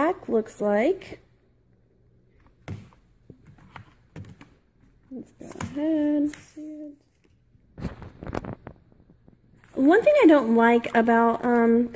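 Hands handle a plastic game console with light knocks and taps.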